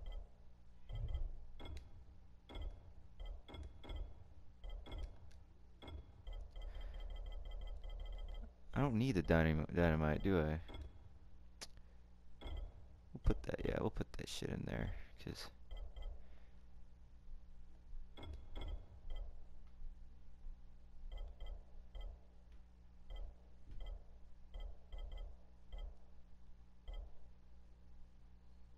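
Soft interface clicks tick as a menu selection moves from item to item.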